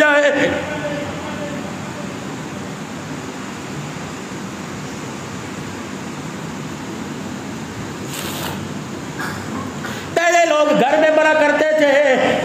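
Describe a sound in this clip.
A man speaks with feeling into a microphone, heard through a loudspeaker.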